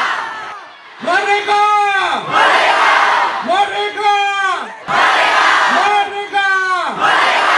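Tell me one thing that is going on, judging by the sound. A young man sings loudly into a microphone through loudspeakers.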